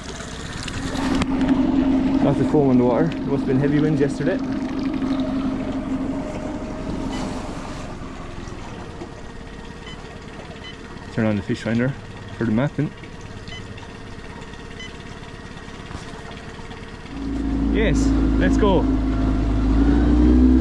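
An outboard motor runs with a steady drone.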